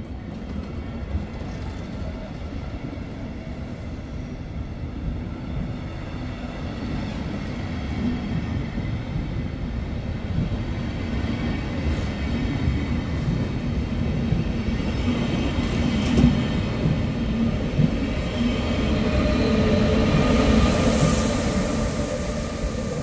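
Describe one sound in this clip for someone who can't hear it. A passenger train rumbles steadily past close by.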